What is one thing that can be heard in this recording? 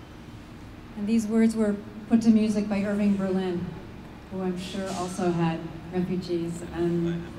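A woman speaks into a microphone through loudspeakers, calmly and with emotion.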